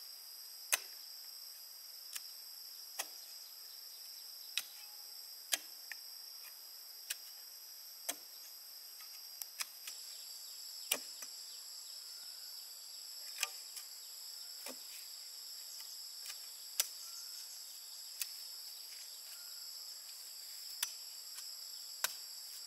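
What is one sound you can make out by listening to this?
A metal bar thuds into soil in sharp, repeated strikes.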